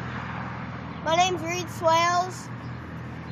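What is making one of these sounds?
A young boy speaks loudly and clearly, close by.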